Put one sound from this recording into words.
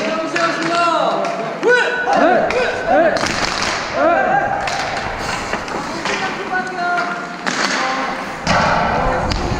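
Men shout and call out across a large echoing ice rink.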